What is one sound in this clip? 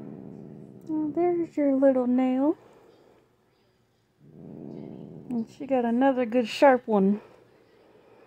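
A cat meows in short, rising and falling cries.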